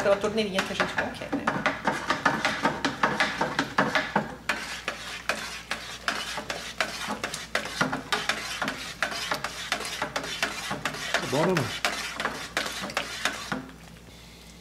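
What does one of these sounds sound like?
A wooden paddle knocks and scrapes against the inside of a metal pot while stirring liquid.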